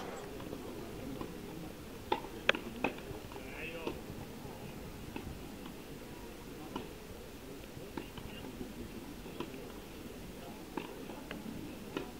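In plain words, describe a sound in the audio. A tennis ball is struck with a racket in sharp pops.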